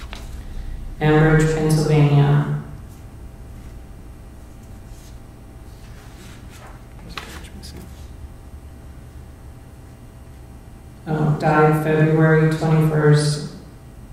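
Bells ring out in held, steady tones.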